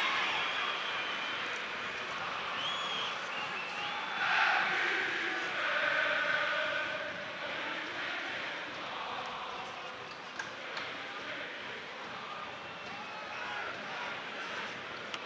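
A large stadium crowd roars and chants throughout.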